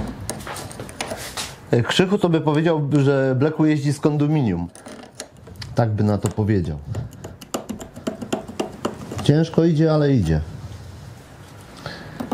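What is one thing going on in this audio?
Pliers click and scrape against a metal exhaust clamp.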